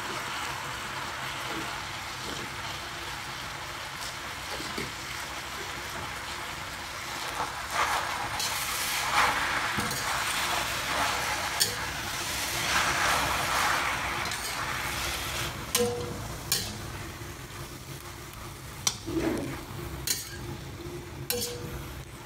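Greens sizzle and crackle in a hot pan.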